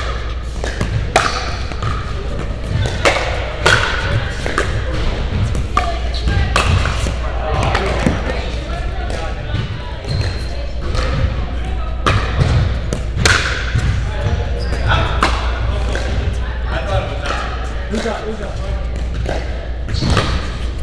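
Paddles hit a ball with sharp pops, echoing in a large hall.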